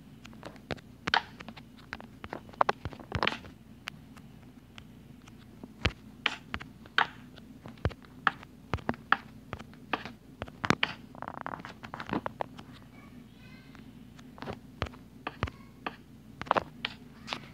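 Wooden blocks are placed with short, sharp knocks.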